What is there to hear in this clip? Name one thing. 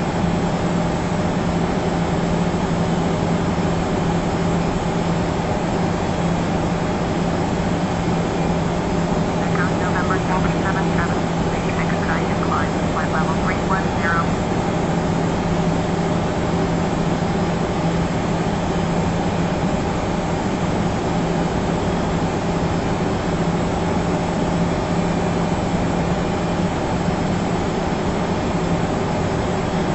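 A jet airliner's engines hum steadily in the cockpit.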